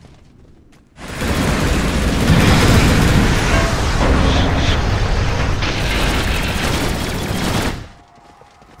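Fiery magic spells roar and crackle loudly.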